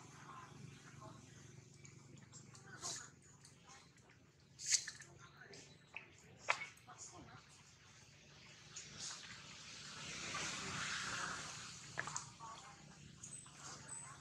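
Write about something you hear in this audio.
Dry leaves rustle and crackle as monkeys shift about.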